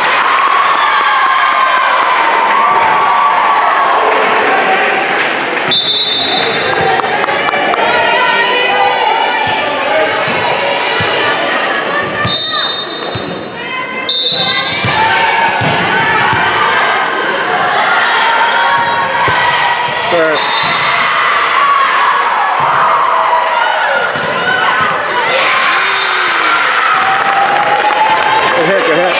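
Young women chatter and shout in a large echoing gym.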